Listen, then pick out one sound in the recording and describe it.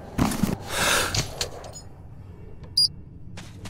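A gas mask filter is swapped with a clunk.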